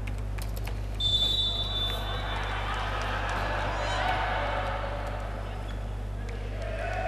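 Young men call out to each other during a team huddle in an echoing sports hall.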